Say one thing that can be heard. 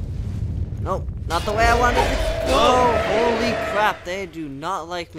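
A magic spell bursts with a crackling whoosh.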